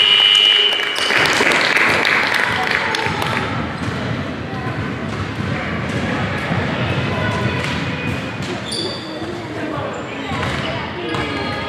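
Young girls chatter in a large echoing hall.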